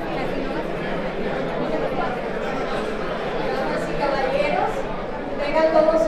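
A woman speaks into a microphone over loudspeakers.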